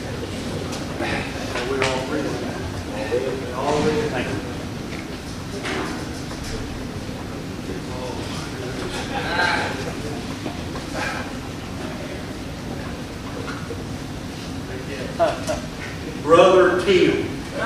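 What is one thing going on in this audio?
A crowd murmurs and chatters quietly.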